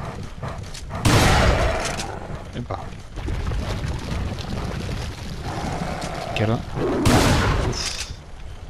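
A shotgun fires with a loud boom.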